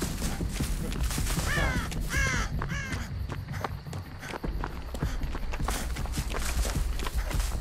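Footsteps crunch quickly over dry leaves and twigs.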